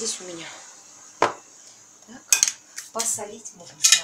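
A spoon scrapes and taps in a pot.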